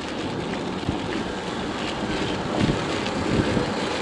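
A bus engine rumbles as it approaches.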